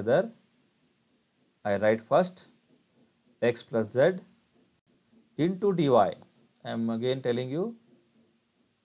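A man speaks calmly through a microphone, in short phrases.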